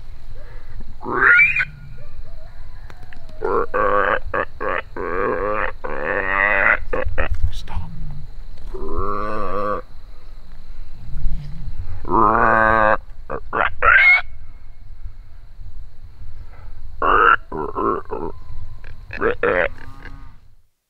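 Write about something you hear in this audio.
A man blows a hand-held game call close by, making loud, wavering bleats in short bursts.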